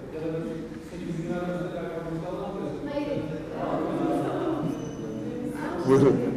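A man speaks with animation, his voice echoing slightly.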